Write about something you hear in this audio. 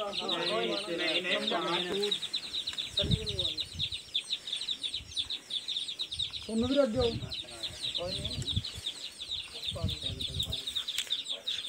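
Men talk nearby in a calm, casual way.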